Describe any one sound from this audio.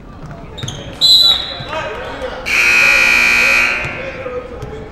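A referee blows a loud whistle.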